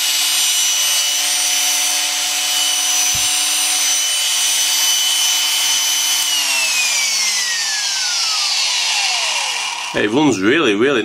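A vintage electric drill motor whines at speed, then winds down.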